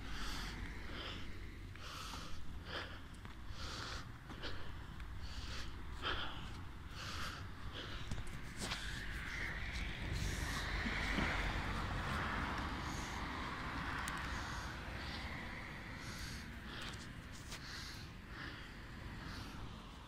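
Wind blusters steadily into the microphone outdoors.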